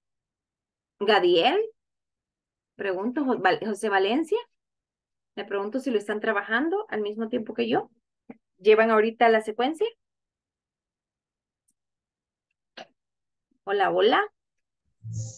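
A young woman speaks calmly into a microphone, close by, in short phrases with pauses.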